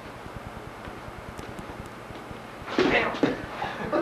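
A body thumps onto a padded mat.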